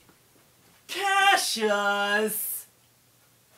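A man groans loudly nearby.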